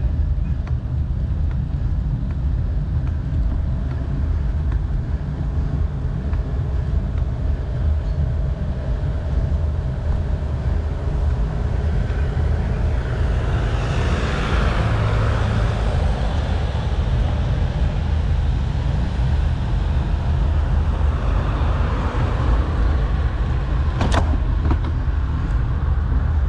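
Tyres roll steadily over smooth asphalt.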